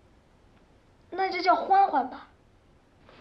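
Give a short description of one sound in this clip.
A young girl answers softly, close by.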